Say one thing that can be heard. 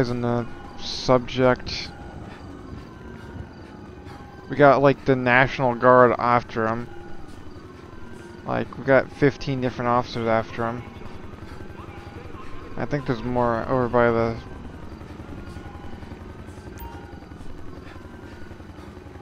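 Footsteps run quickly along a paved road.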